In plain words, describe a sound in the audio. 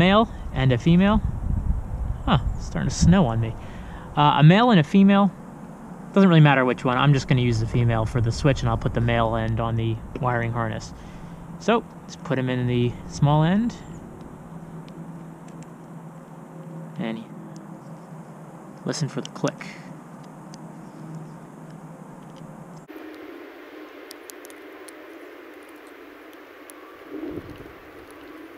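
Wires and a small plastic connector rustle and click in handling.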